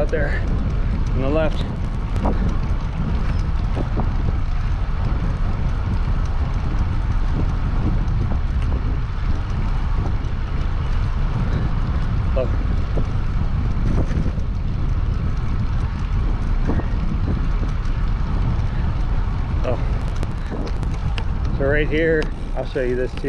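Bicycle tyres roll steadily on smooth pavement.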